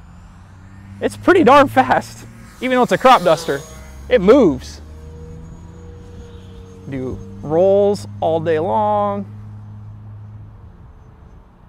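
A model airplane's engine buzzes as it flies overhead.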